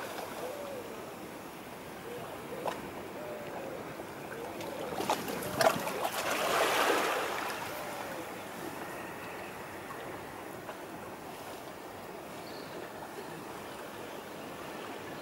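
Calm water laps gently against a shore.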